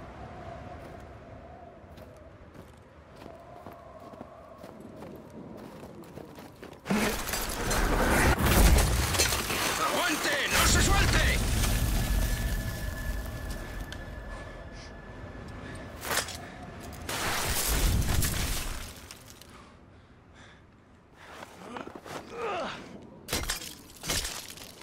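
Ice axes bite into ice with sharp knocks.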